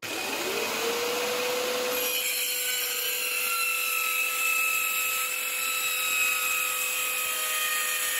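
An electric circular saw spins up and whines steadily as it cuts through a board.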